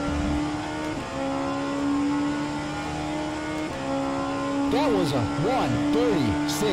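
A racing car engine drones at high revs.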